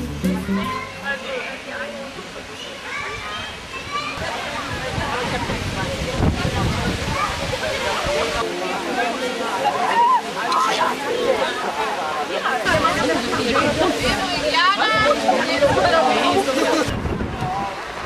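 A crowd of young people chatters nearby outdoors.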